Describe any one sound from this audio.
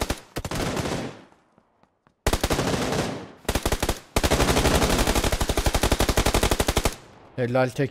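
Rapid bursts of automatic gunfire rattle loudly.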